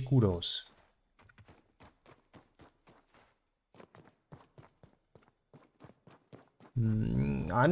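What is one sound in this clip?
Footsteps patter softly through grass.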